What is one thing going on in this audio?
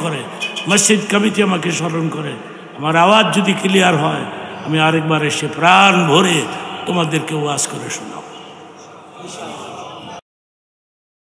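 An elderly man preaches with a chanting, melodic voice through a microphone and loudspeakers.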